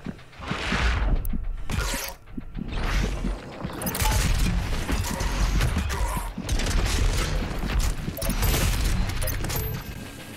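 Heavy gunfire blasts repeatedly.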